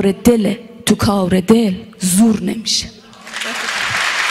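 A woman sings into a microphone, close and clear.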